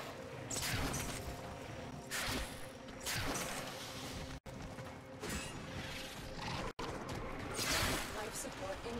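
Game weapons fire in sharp bursts with whooshing blasts.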